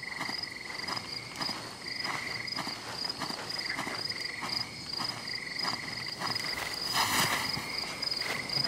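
Soft footsteps pad steadily across a wooden floor.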